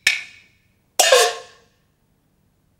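A man cries out in a strained, theatrical voice.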